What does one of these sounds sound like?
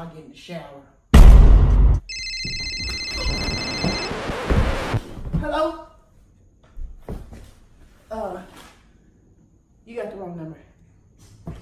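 A young woman talks on a phone close by.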